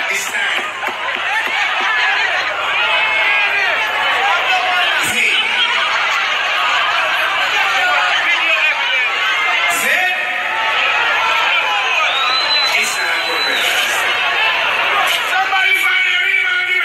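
A man performs into a microphone over loudspeakers.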